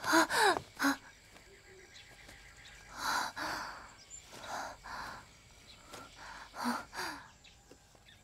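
A young woman pants heavily, close by.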